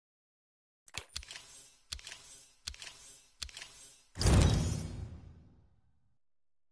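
Short interface ticks and chimes sound as scores tally up.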